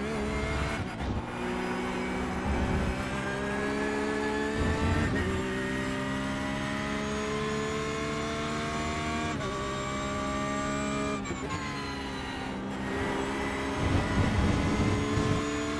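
A racing car engine roars steadily, rising in pitch as it speeds up and dropping sharply at each gear change.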